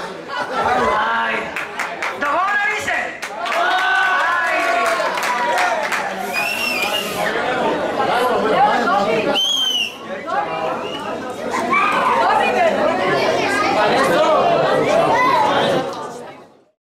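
A saxophone plays a lively melody up close.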